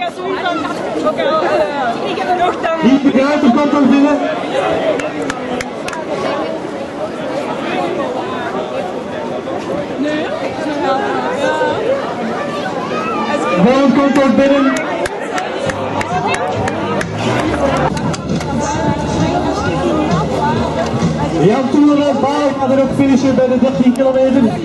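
Spectators clap for passing runners.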